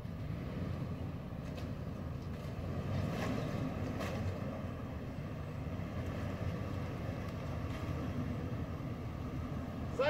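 Tyres squelch and splash through deep mud.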